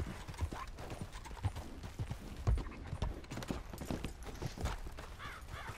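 Horse hooves thud heavily on the ground.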